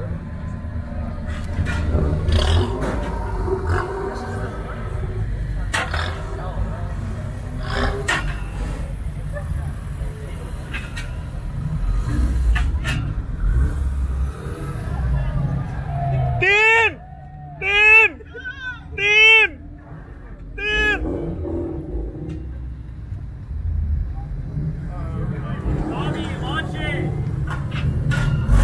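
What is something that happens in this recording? A car engine rumbles low as a lowered car rolls slowly past.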